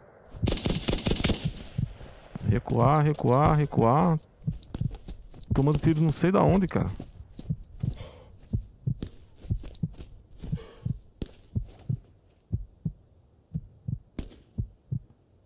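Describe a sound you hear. Tall grass and brush rustle against a moving body.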